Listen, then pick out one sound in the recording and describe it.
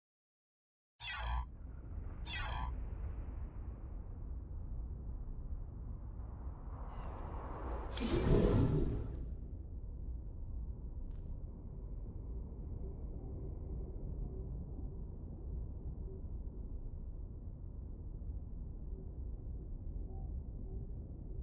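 A low ambient drone rumbles steadily.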